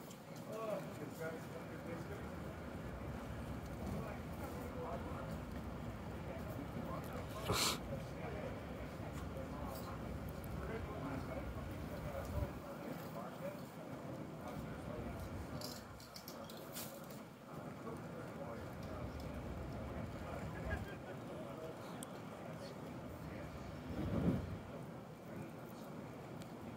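Wind gusts outdoors, rumbling against a microphone.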